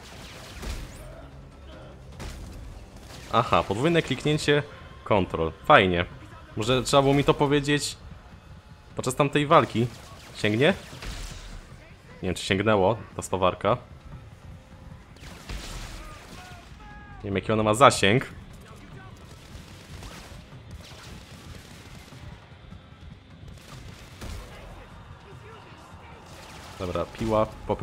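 An energy weapon fires short bursts of shots.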